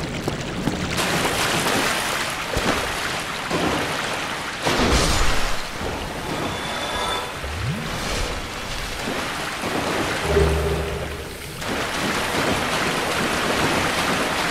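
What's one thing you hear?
Footsteps splash through shallow water.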